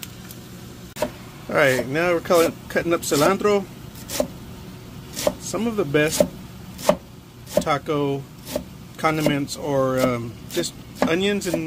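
A knife chops herbs with repeated knocks.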